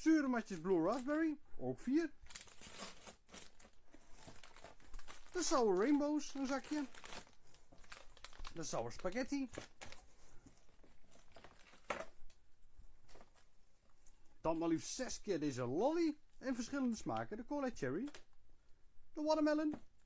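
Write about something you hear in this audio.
Plastic candy wrappers crinkle as they are handled.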